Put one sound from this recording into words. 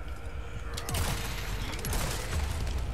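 A gunshot fires with a sharp bang.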